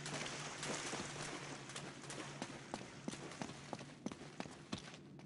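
Footsteps run quickly over loose gravel and stone.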